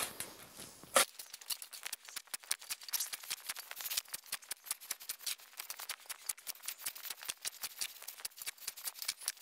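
A small hand tool scratches rapidly through soil.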